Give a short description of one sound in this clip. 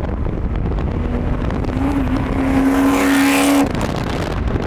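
A sports car engine revs and rises in pitch close by.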